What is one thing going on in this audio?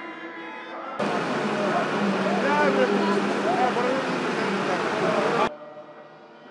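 A large crowd shouts and chants loudly outdoors.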